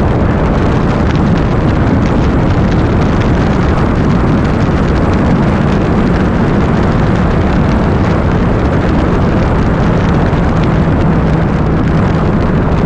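Wind buffets loudly and steadily against a moving motorcycle.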